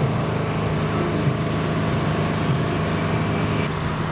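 A tugboat engine rumbles steadily.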